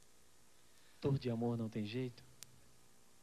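A man sings softly into a close microphone.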